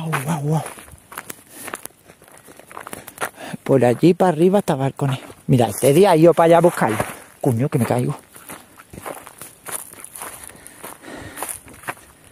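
A dog runs across dry grass and dirt.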